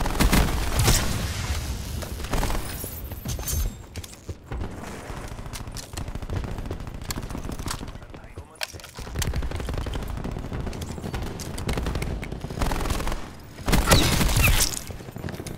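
A crossbow fires in a video game.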